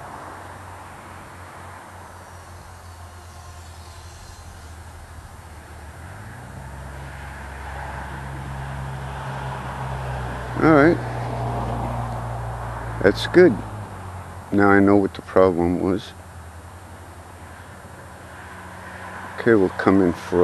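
Wind rushes past a flying model plane.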